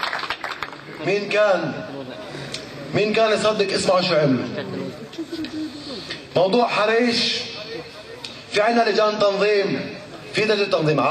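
A young man speaks with animation into a microphone through loudspeakers.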